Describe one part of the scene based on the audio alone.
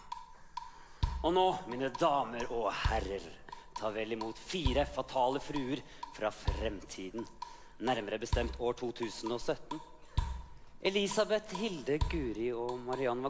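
A young man sings into a microphone.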